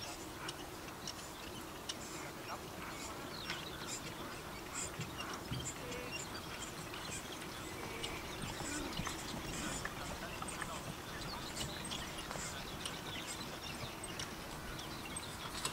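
Carriage wheels rattle and creak.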